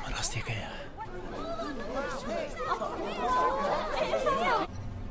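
A crowd of young people chatter in a room.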